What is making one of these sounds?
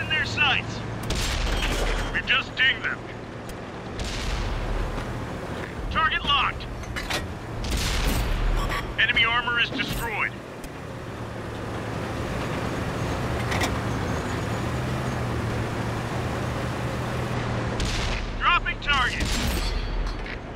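A tank cannon fires with heavy booms.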